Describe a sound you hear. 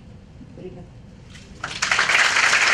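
A young woman speaks briefly into a microphone over a loudspeaker.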